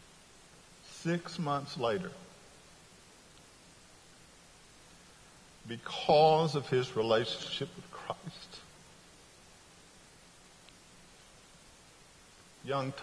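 A middle-aged man speaks with animation in pauses, heard through a microphone in a large echoing room.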